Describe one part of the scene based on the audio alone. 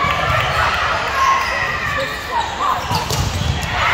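A volleyball is served with a sharp smack.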